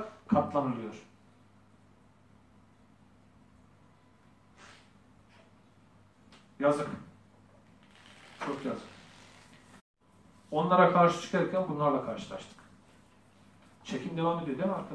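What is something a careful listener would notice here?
A man speaks in a formal, measured way, close to the microphone, with long pauses.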